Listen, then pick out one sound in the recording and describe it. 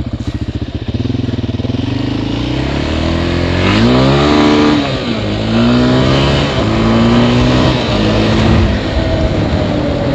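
A quad bike engine revs up and down loudly.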